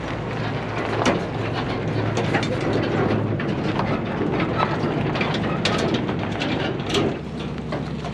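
A loaded trailer rattles and clanks as it rolls.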